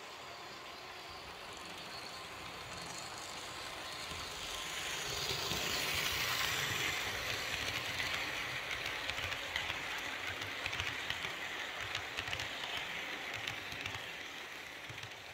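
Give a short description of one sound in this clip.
A model electric train rumbles and clatters along metal track, growing louder as it passes close.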